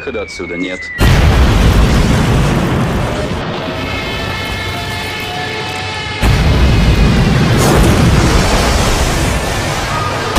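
An explosion booms loudly and rumbles on.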